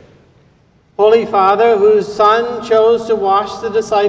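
An elderly man chants in a sung voice through a microphone, echoing in a large hall.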